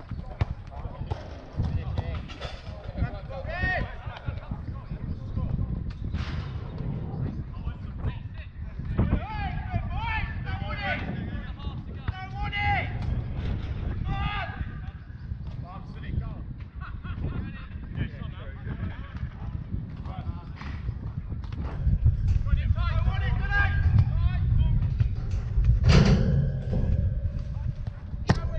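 Adult men shout to each other across an outdoor pitch.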